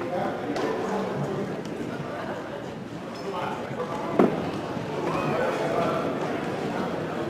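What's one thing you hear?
Several people chat and call out in a large echoing gym.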